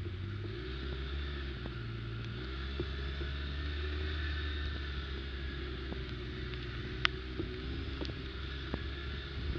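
An all-terrain vehicle engine rumbles steadily up close.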